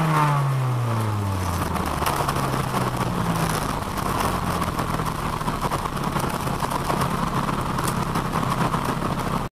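A car engine roars loudly from inside the cabin, its pitch dropping and then holding steady.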